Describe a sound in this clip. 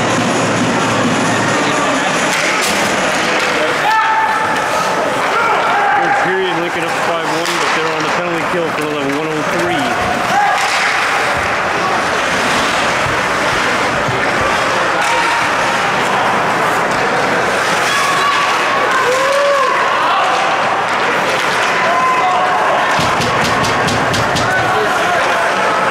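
A crowd cheers and shouts in a large echoing arena.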